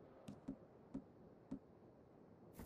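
Short soft clicks sound as a menu wheel turns.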